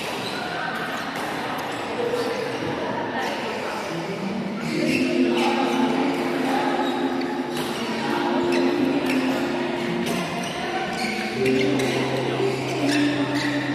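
Badminton rackets smack shuttlecocks in a large echoing hall.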